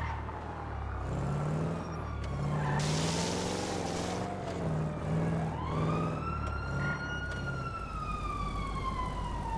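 A car engine revs loudly, rising and falling.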